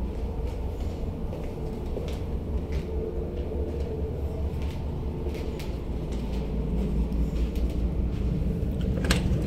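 Footsteps walk along a hard floor.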